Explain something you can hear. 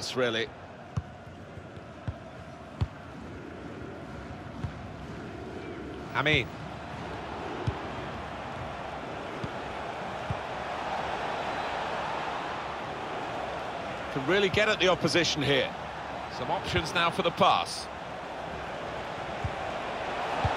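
A football is kicked with short dull thumps.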